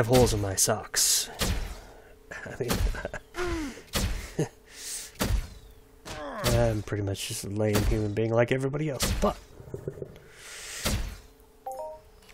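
Magical spell effects shimmer and whoosh in short bursts.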